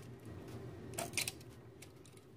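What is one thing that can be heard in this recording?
Diagonal cutters snip a wire lead.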